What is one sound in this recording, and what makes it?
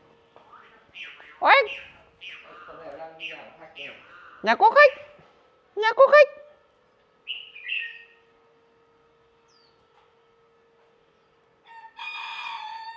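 A caged bird sings loud, varied whistling phrases close by.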